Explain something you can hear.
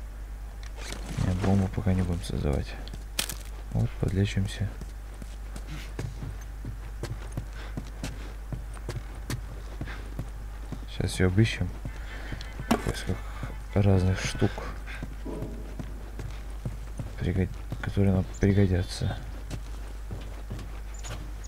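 Footsteps thud slowly on creaking wooden floorboards.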